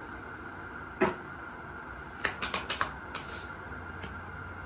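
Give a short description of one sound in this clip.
Cards shuffle and tap against each other.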